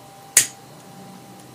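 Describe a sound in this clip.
A lighter clicks once.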